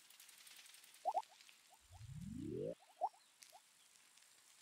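Short electronic game blips chime now and then.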